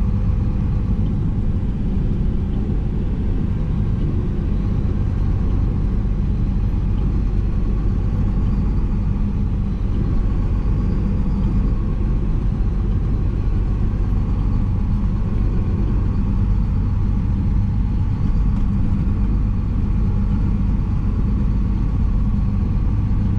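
A truck's diesel engine drones steadily inside the cab.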